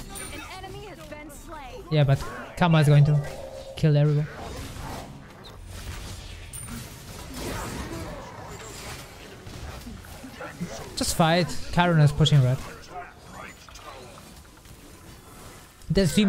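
Game spells and attacks whoosh and crackle.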